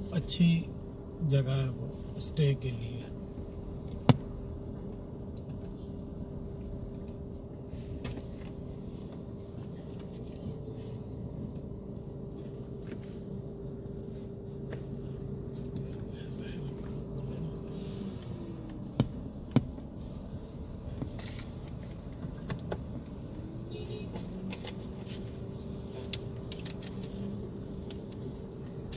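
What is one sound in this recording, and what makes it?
A car engine hums low and steady, heard from inside the car.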